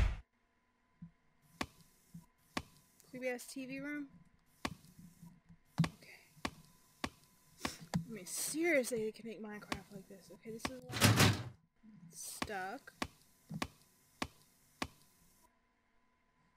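Footsteps thud slowly and evenly on a wooden floor.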